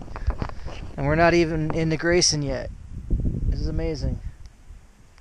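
A man talks close to the microphone, outdoors.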